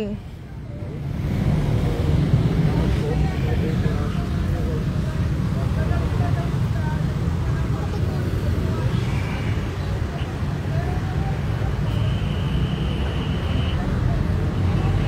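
Traffic rumbles on a nearby road.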